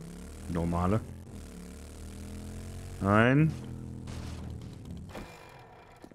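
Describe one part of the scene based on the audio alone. A motorbike engine revs up and then idles.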